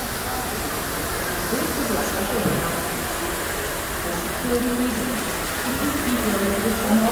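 Water pours steadily from a fountain and splashes into a basin.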